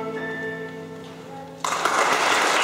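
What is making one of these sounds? A children's choir sings a held final note.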